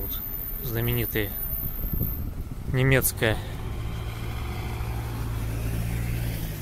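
Car engines rumble steadily as traffic passes on a street.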